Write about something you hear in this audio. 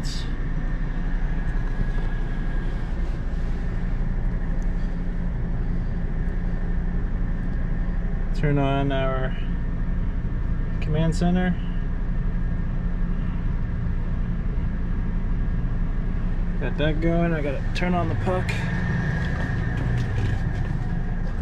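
An engine idles with a steady low hum.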